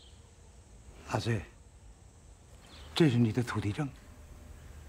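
An elderly man speaks gently and earnestly.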